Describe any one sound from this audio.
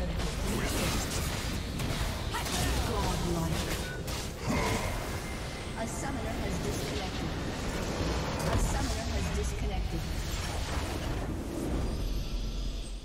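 Spell blasts and clashing weapons crackle and boom in a frantic game battle.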